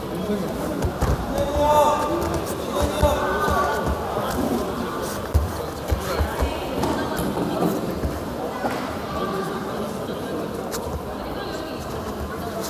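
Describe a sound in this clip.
Bodies thump and scuff on a padded mat.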